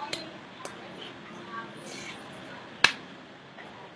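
A man's hands tap and brush against each other close by.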